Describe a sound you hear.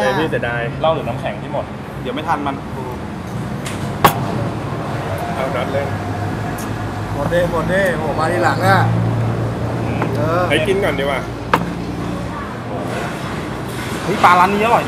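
Young men talk and laugh together nearby.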